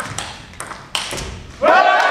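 A table tennis ball clicks off paddles and the table in a large indoor hall.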